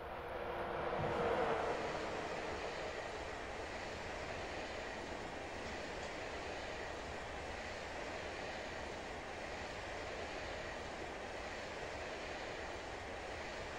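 A freight train rumbles steadily along the rails.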